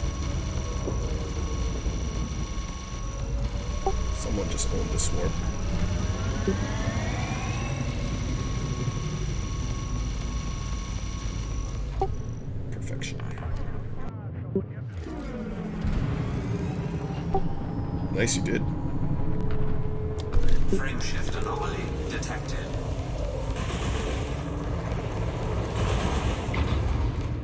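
A spaceship engine hums low and steadily.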